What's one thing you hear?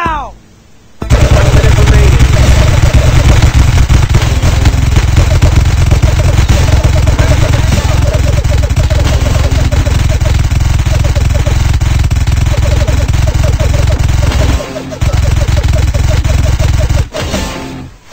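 Paintball guns fire in rapid bursts.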